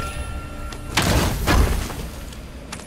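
A heavy chest lid swings open with a loud thud.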